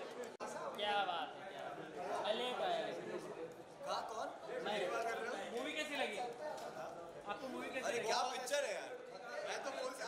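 A young man talks cheerfully close by.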